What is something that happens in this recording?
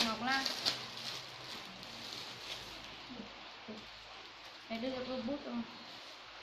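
Plastic bags rustle as a young woman handles them.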